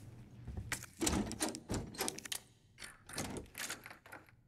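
A key turns and clicks in a door lock.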